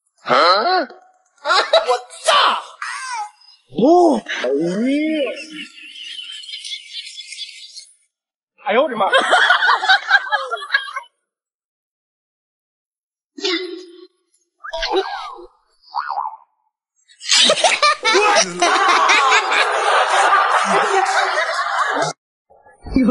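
A woman talks with animation nearby.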